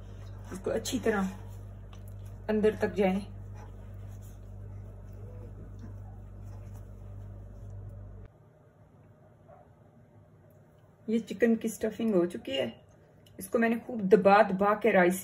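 Hands rub and squish raw chicken.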